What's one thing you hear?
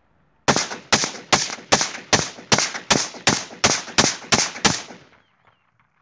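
A rifle fires a rapid series of single shots outdoors, each echoing away.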